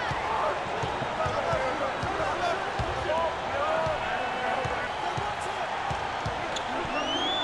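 A basketball bounces on the floor in a quick rhythm.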